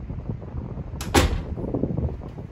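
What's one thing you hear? A door latch clicks and a door thuds shut.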